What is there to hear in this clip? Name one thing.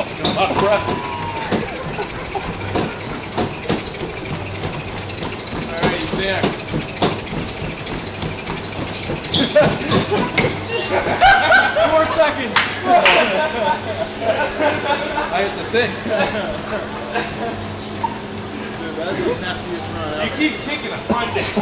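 A treadmill belt whirs and hums steadily.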